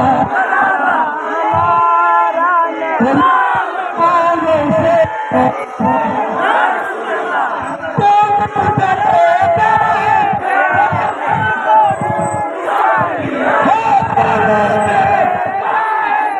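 A large crowd of men chants together in unison outdoors.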